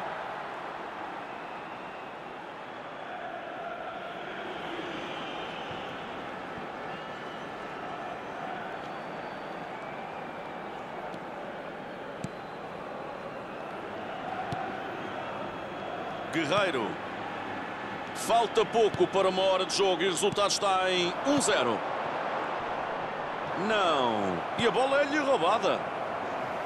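A large crowd murmurs and roars steadily, as in a stadium.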